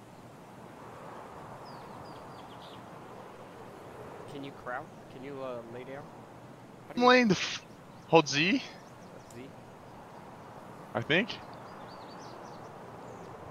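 Wind rustles softly through grass and trees outdoors.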